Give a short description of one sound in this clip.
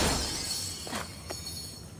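A magical whoosh rushes past.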